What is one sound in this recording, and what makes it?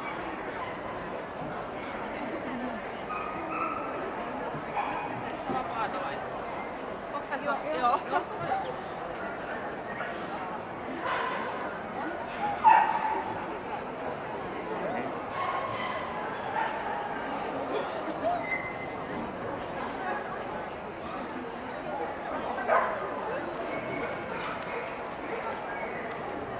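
A crowd murmurs throughout in a large echoing hall.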